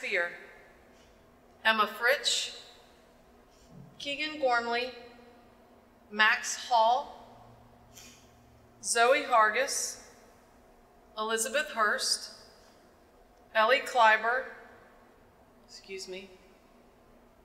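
A woman reads out calmly over a microphone in an echoing hall, with pauses between short phrases.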